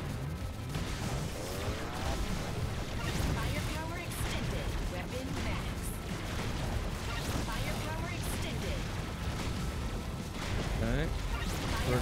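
Rapid video game gunfire and explosions crackle.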